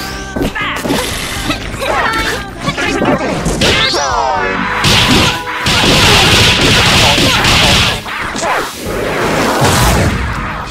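Cartoonish punches and slashes land with sharp smacks and whooshes.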